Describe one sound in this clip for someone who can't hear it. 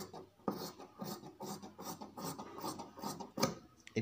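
Scissors snip through cloth.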